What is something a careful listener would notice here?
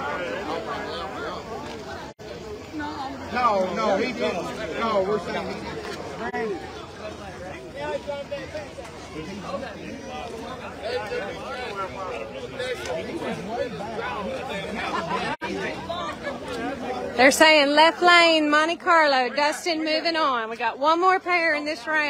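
A crowd of people talk and shout outdoors.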